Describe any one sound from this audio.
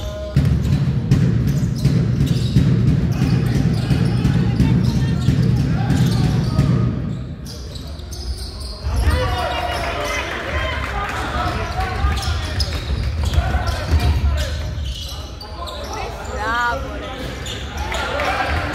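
Spectators chatter and shout in an echoing hall.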